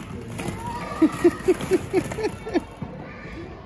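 A toddler makes short repeated babbling sounds close by.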